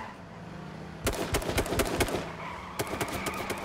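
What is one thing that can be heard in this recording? Cars crash into each other with loud, rapid bangs.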